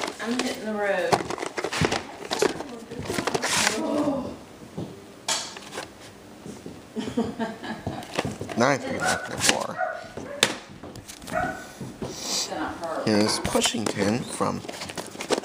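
A plastic tape case rattles and taps in a hand close by.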